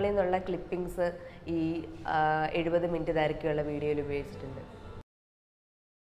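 A young woman speaks with emotion close to a microphone.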